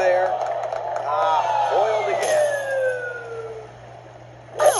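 A game jingle plays a falling slide of tones.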